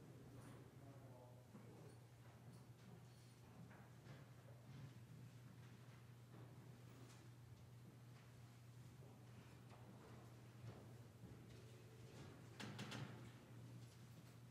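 A keyboard plays softly in a large, echoing room.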